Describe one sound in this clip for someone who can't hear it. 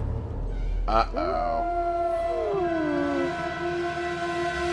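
A wolf howls long and wavering.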